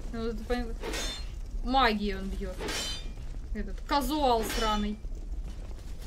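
A young woman talks with animation into a microphone nearby.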